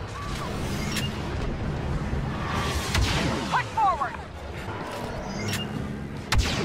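Rifle shots crack sharply.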